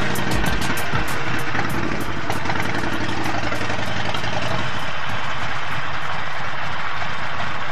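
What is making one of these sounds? A motorcycle engine rumbles steadily at close range.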